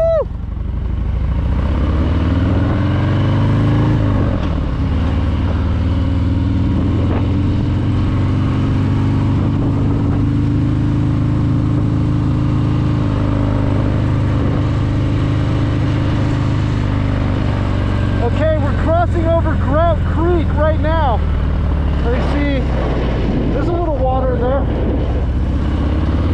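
A motorcycle engine rumbles steadily as it rides along a road.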